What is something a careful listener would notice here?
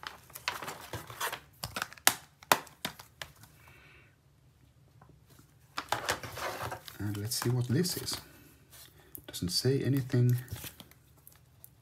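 Plastic cases click and clack as hands handle them.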